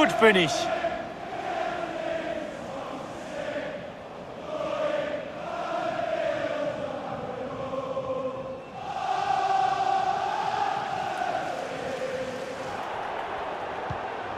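A large crowd sings and cheers in a stadium.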